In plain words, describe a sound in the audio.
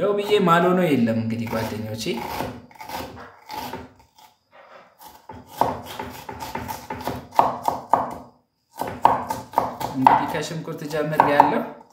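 A knife chops on a wooden board.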